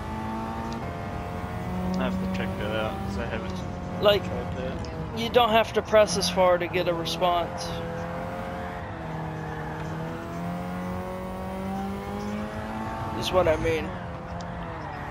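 A racing car engine drones steadily, its pitch rising and falling with the gears.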